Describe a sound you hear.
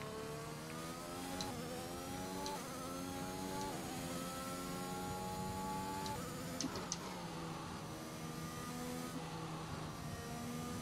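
A racing car engine screams at high revs, climbing in pitch and dropping briefly at each gear change.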